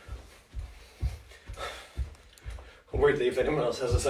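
Feet thud on a carpeted floor during jumping.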